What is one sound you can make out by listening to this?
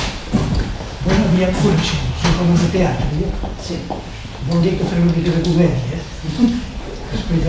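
An elderly man speaks with animation to an audience.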